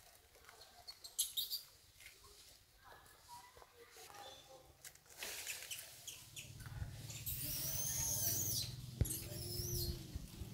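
A baby monkey squeaks shrilly nearby.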